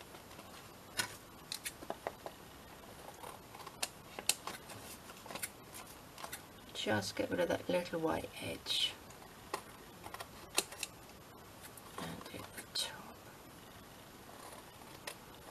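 Scissors snip through card.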